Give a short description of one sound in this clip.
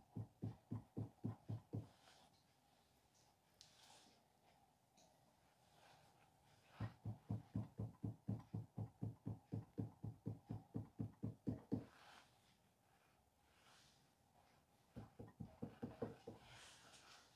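A fist pats wet clay in quick, dull thumps.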